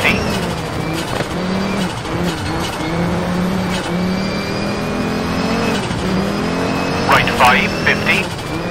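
A rally car engine revs and roars, shifting up and down through the gears.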